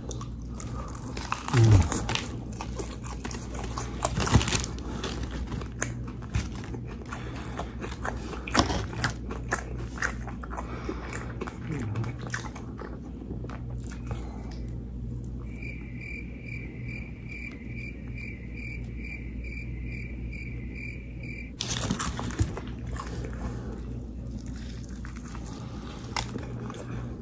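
A man chews food noisily close up.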